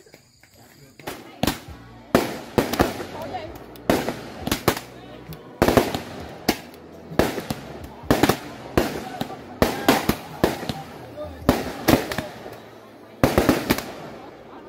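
Fireworks bang and crackle nearby.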